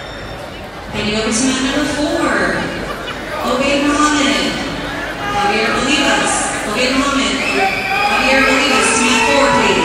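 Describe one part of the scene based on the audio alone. Men shout instructions loudly from close by.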